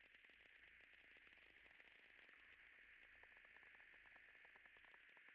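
Gunfire crackles rapidly in a distant battle.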